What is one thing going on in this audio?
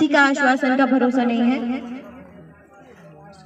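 A young woman speaks loudly and firmly close to a microphone.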